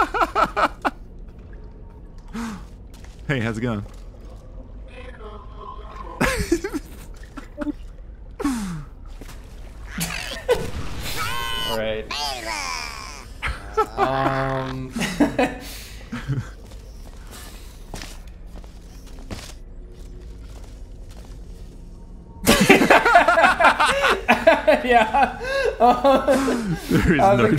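A man laughs loudly close to a microphone.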